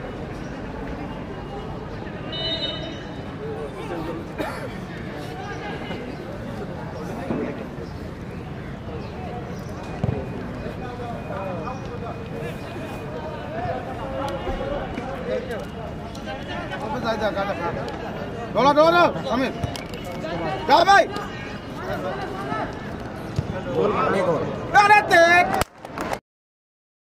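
A crowd of spectators shouts and cheers outdoors, growing louder near the end.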